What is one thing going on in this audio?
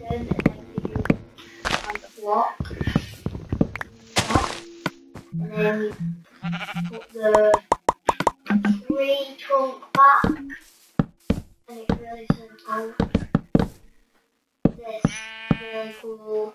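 Wooden blocks are placed with short, dull knocks.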